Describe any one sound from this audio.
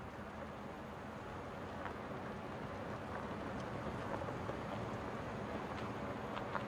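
A car slowly rolls closer, its engine growing louder.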